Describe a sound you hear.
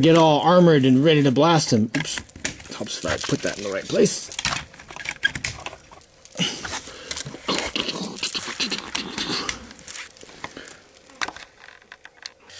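Plastic toy parts click and knock as they are handled.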